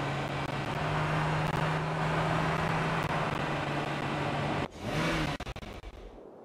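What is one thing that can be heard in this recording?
A car engine hums steadily, then revs briefly and cuts off.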